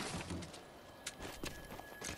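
Footsteps climb stairs.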